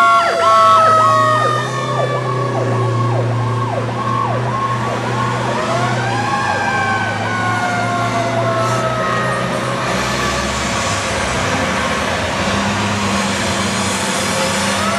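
Heavy fire engine engines rumble as the trucks pull out and drive off.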